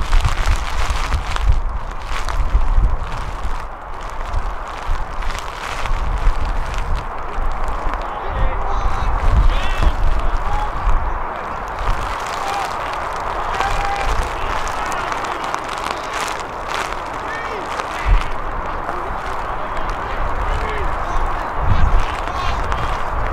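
Wind buffets outdoors throughout.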